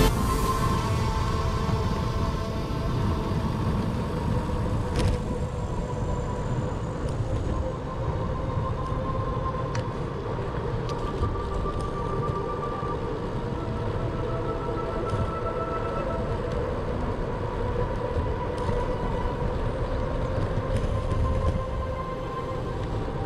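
Wind rushes and buffets loudly past a moving bicycle.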